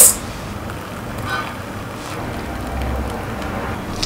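Tea pours into a cup.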